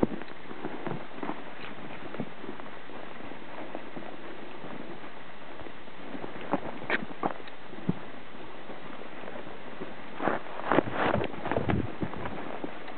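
A horse's hooves crunch through snow and dry brush.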